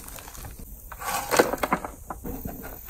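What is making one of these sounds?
A shovel tips dirt into a metal wheelbarrow.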